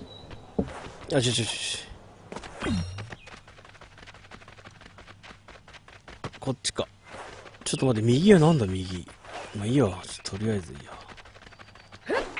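Quick footsteps patter on a dirt path.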